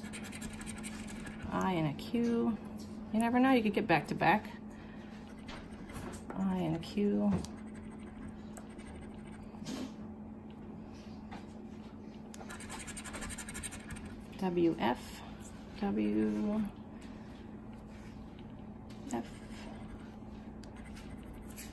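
A coin scratches across a card.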